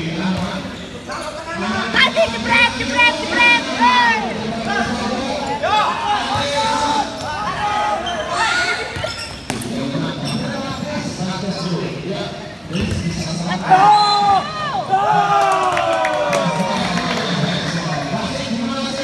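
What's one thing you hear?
Young men shout and cheer loudly in an echoing hall.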